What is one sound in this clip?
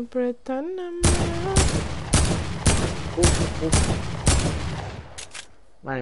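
Gunshots ring out in rapid, loud bursts.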